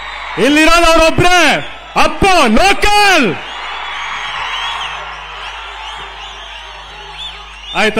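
A large crowd cheers and screams outdoors.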